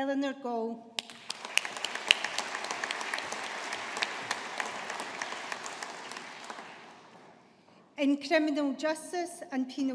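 A woman reads out calmly over a loudspeaker in a large echoing hall.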